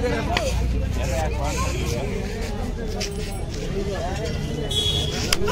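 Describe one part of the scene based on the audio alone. A crowd of men chatters and calls out nearby.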